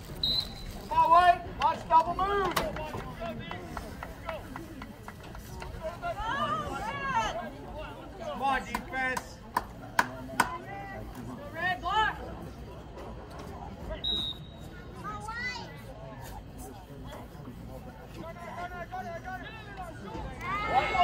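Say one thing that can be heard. Young players and coaches shout and call out outdoors.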